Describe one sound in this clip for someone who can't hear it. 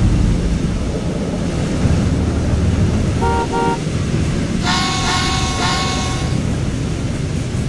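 A train rumbles steadily as it rolls along the track.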